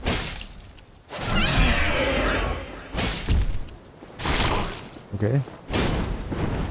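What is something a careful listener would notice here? A sword swings and strikes with sharp clangs.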